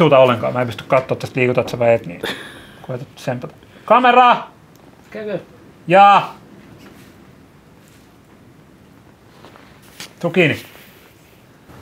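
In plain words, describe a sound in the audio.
A man speaks nearby in short phrases.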